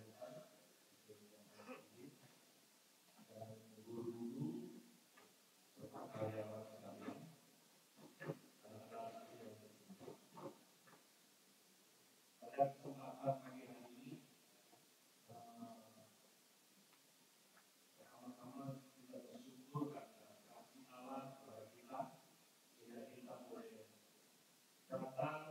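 A man speaks calmly into a microphone, heard through loudspeakers in a large room, with pauses.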